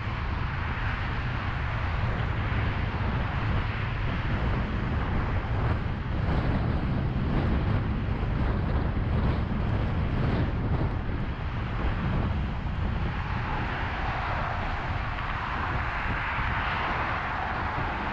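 Cars rush past close by on a highway.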